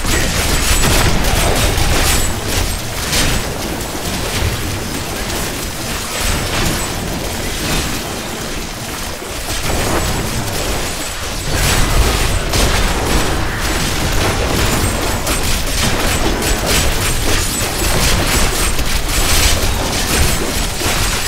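Weapons clash and electric spells crackle.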